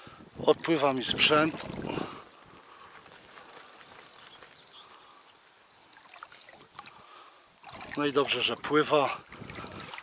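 A fish splashes in shallow water close by.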